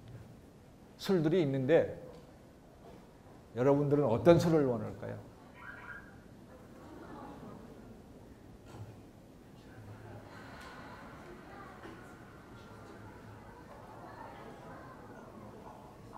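A man lectures calmly through a microphone in a large echoing hall.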